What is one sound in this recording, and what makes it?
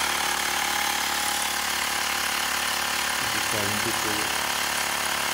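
A small electric air pump whirs steadily.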